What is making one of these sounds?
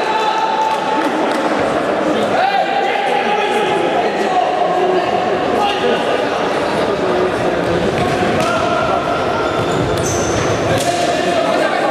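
A ball is kicked with sharp thuds in an echoing hall.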